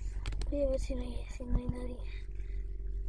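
A young boy speaks close to the microphone.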